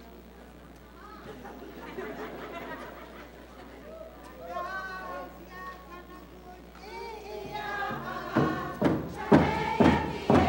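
A large group of men and women sings and chants together in a large hall.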